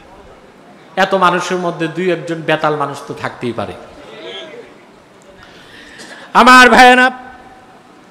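A man chants melodically through a microphone and loudspeakers.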